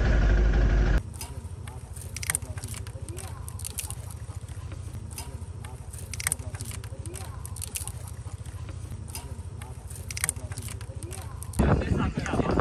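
A metal tool clicks and taps against a bike wheel.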